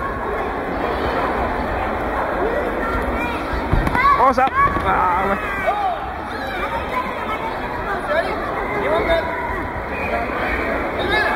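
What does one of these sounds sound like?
A crowd of children and adults chatters throughout a large echoing hall.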